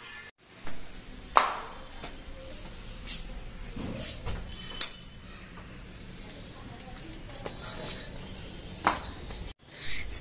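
Footsteps in sandals slap on a hard floor.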